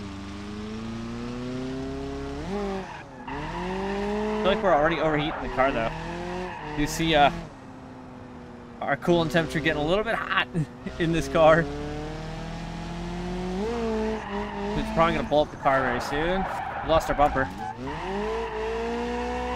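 A car engine revs up and down throughout.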